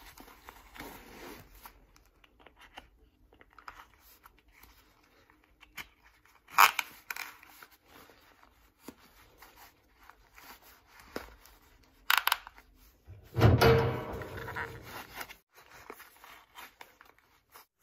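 A belt buckle clicks and rattles.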